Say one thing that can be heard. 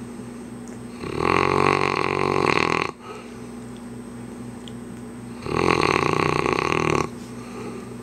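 A dog snores loudly in deep, rumbling breaths.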